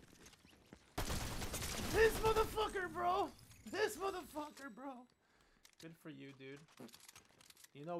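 A man speaks excitedly into a microphone.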